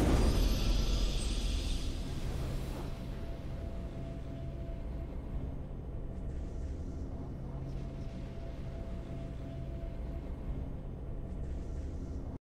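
Triumphant game music plays with a bright swell at the start.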